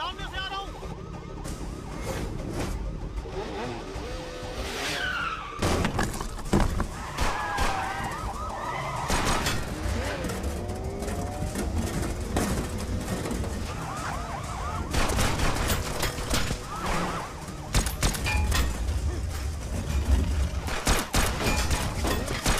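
A motorcycle engine roars past.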